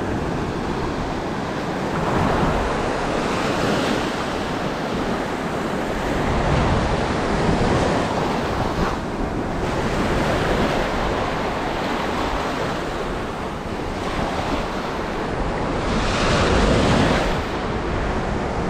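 Waves break and wash up onto a beach close by, in steady surges.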